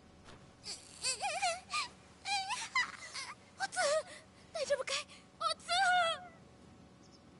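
A man shouts urgently and in distress.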